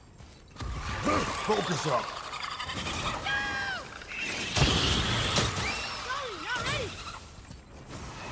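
A flying creature shrieks.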